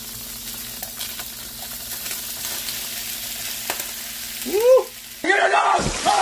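Shrimp sizzle and crackle in a hot frying pan.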